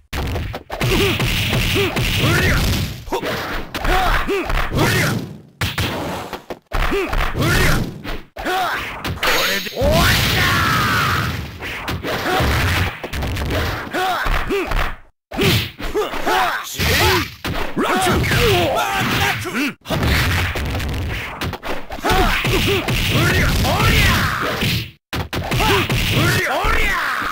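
Fighting game characters shout battle cries.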